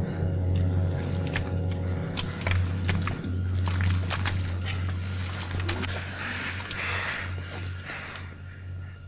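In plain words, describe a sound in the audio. Boots squelch and crunch through mud and rubble.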